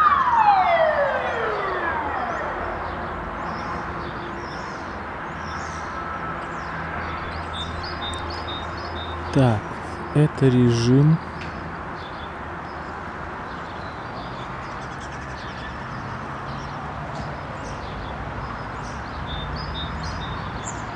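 Small birds chirp and whistle in a tree.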